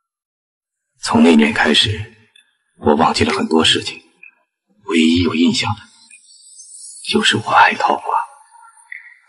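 A young woman speaks close by in a soft, casual voice.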